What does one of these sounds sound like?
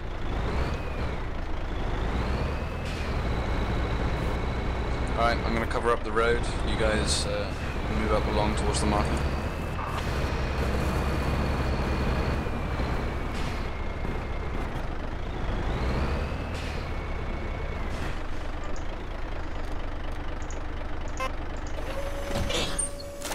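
A truck engine rumbles steadily while driving.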